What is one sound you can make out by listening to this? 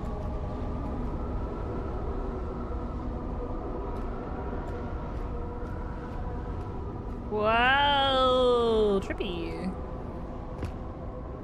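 A low underwater hum drones steadily.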